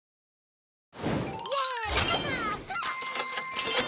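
A cheerful game jingle plays.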